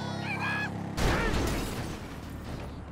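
A motorbike crashes into a car with a loud metallic bang.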